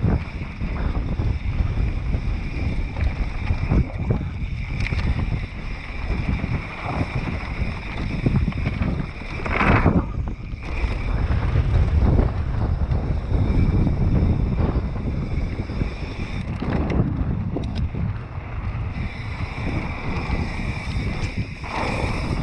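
Mountain bike tyres crunch and rattle over a dirt trail.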